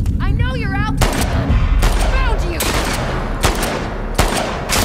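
Gunshots ring out one after another with a sharp echo.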